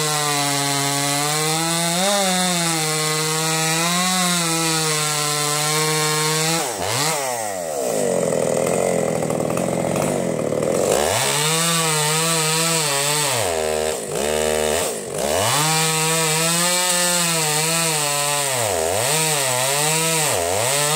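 A chainsaw engine roars loudly, revving up and down as it cuts through logs.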